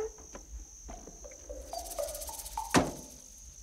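A car door opens with a creak.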